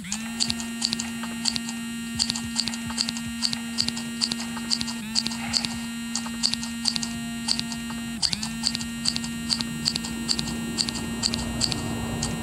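Scissors snip through curly fur in crisp cuts.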